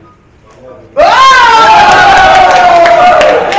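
Several people clap their hands.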